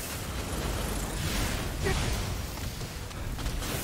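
A fireball explodes with a loud roar.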